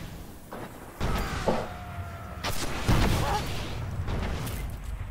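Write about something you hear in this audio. Gunshots fire in bursts with a booming echo.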